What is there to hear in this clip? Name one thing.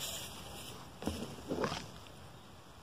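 Leaves rustle and brush close by.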